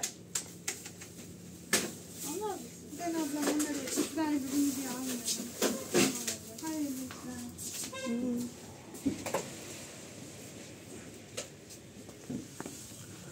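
Sandals click and scuff on a hard tiled floor.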